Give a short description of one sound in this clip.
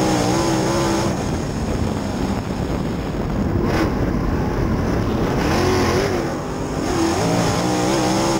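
A race car engine roars loudly close by, its pitch rising and falling.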